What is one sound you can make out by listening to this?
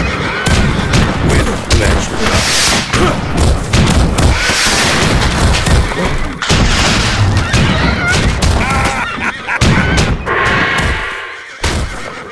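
Horses gallop and neigh.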